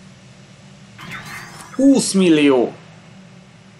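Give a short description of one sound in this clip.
A young man talks close to a microphone.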